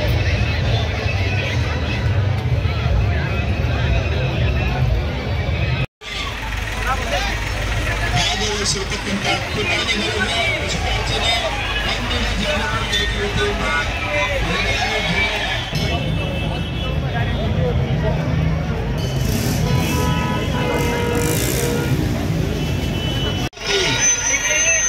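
A large outdoor crowd chatters and shouts loudly.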